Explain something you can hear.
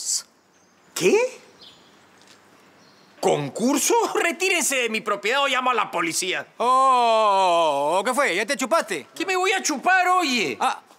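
A middle-aged man speaks with animation close by.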